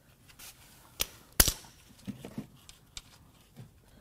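Metal tools click and clank against an engine.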